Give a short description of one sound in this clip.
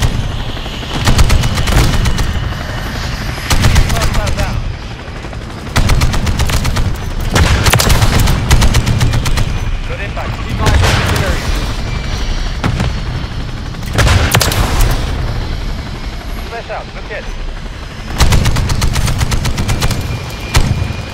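Rapid cannon fire rattles in short bursts.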